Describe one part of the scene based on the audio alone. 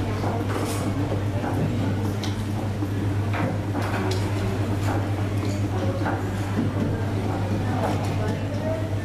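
Several young people chatter and murmur nearby.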